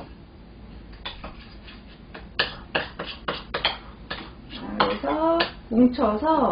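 A spoon scrapes and clinks against a ceramic bowl.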